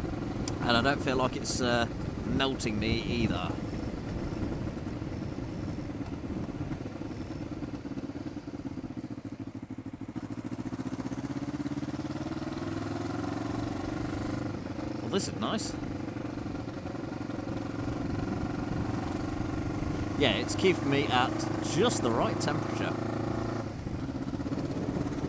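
A motorcycle engine hums steadily, rising in pitch as it speeds up.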